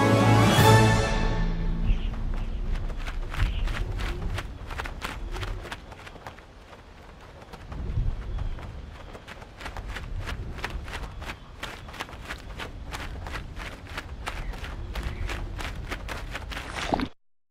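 A bird flaps its wings.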